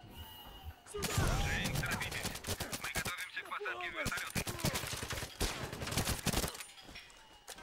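Rapid gunfire bursts ring out in quick succession.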